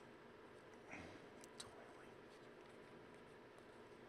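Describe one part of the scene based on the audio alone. Plastic-sleeved trading cards rustle softly between fingers.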